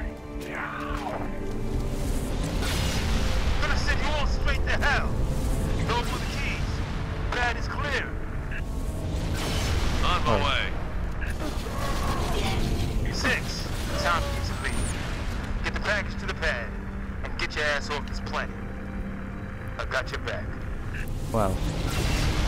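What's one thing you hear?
A heavy blow lands with a metallic thud.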